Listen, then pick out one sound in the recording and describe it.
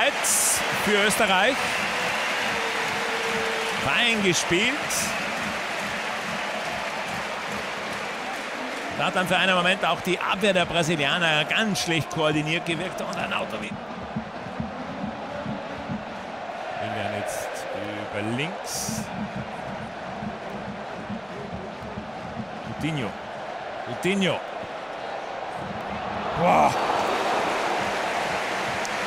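A large crowd roars steadily in a big open stadium.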